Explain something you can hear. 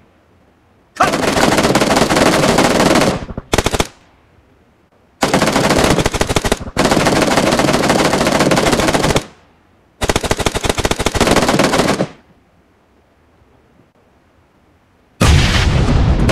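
An automatic rifle fires in long, rapid bursts.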